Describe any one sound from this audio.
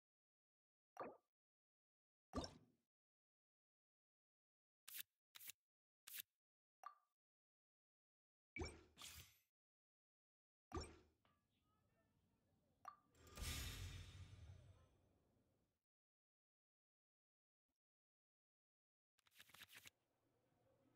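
Short game menu clicks and chimes sound now and then.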